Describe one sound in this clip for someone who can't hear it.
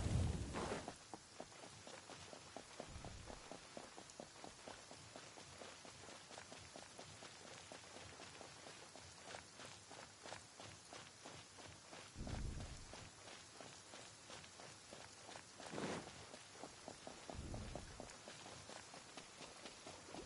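Quick footsteps patter over grass and rock.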